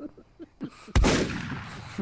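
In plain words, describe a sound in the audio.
A gunshot bangs loudly.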